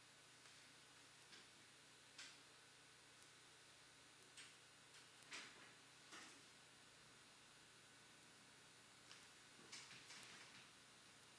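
Soft rustling hisses come in short bursts from a small object handled close to a microphone.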